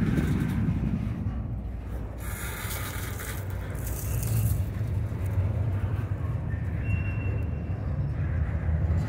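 A long freight train rumbles steadily past up close.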